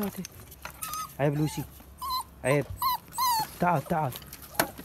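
A puppy whines in short, high cries.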